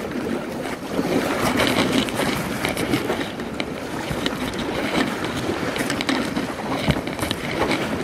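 A paddle splashes into the water in steady strokes.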